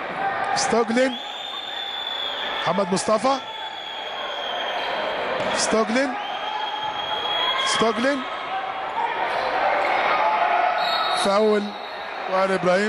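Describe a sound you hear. Sneakers squeak sharply on a court.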